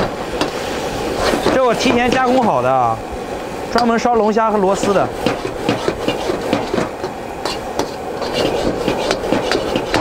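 A metal ladle scrapes and stirs food in a wok.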